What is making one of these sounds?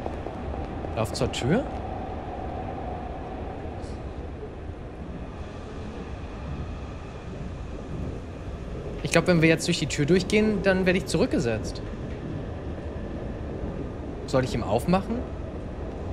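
A young man speaks briefly and with animation into a close microphone.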